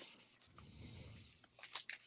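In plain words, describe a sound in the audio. A foil wrapper crinkles as a card pack is torn open.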